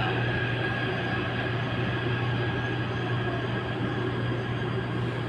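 A train rumbles and hums steadily as it travels along the track.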